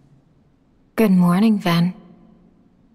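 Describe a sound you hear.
A young woman speaks softly.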